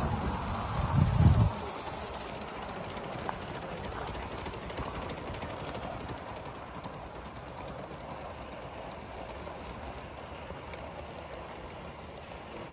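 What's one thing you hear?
A model train's wheels rattle and click along metal rails.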